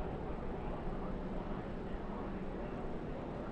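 A race car engine roars at high speed close by.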